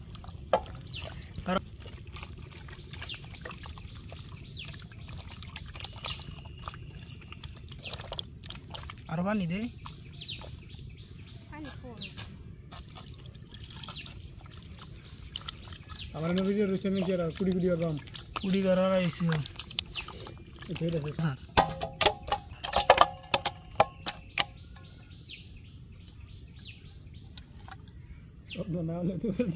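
Hands squelch and squish raw meat in a wet bowl.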